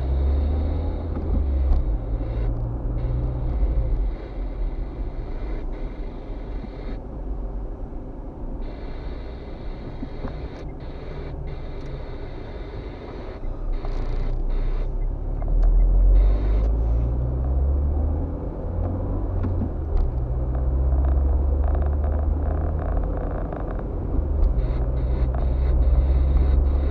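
A car engine hums steadily from inside while driving, rising and falling with speed.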